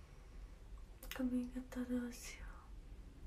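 A young woman speaks softly close to the microphone.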